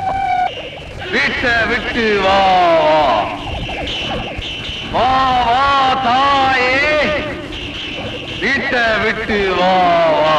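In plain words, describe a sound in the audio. A man speaks loudly and dramatically, close by.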